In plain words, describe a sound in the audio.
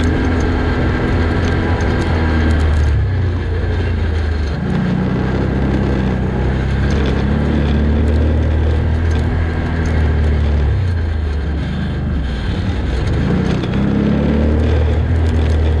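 An engine hums and revs as a vehicle drives over a rough dirt track.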